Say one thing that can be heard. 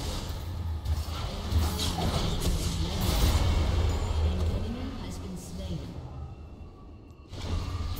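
Magic blasts and strikes clash in a fast video game battle.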